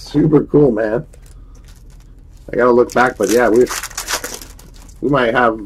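A foil card wrapper crinkles and tears as it is opened by hand.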